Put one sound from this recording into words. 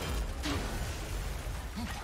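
A dragon breathes out a roaring blast of fire.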